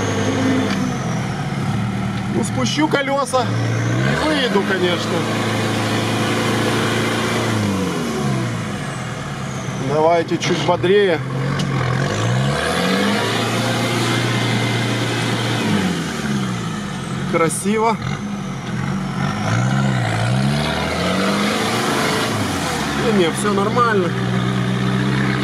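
A vehicle engine rumbles and revs up and down, heard from inside the cab.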